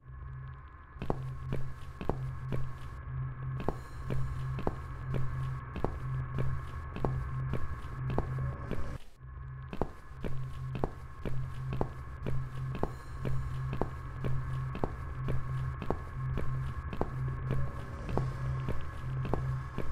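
Footsteps fall at a steady walking pace on a hard floor.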